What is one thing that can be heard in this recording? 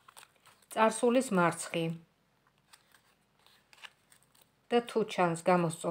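Playing cards shuffle and riffle softly.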